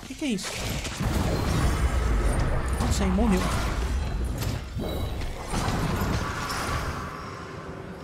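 Fiery spells roar and explode in bursts.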